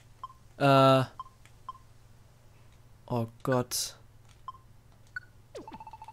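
Short electronic menu blips sound now and then.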